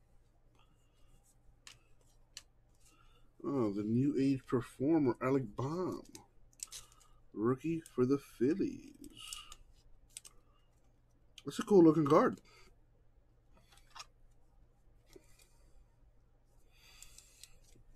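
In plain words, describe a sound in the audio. Cards flick and rustle softly between fingers, close by.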